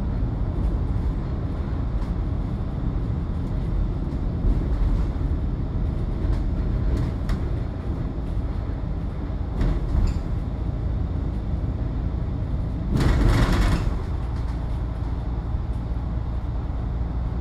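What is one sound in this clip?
Tyres roll over the road surface with a steady hum.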